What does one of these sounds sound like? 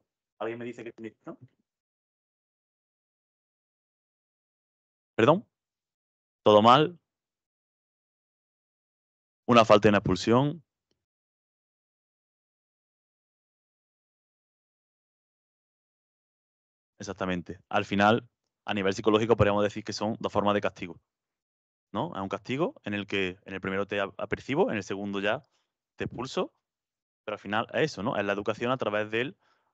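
A man speaks calmly through a microphone in a large room, with pauses.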